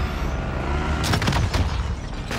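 An explosion bursts.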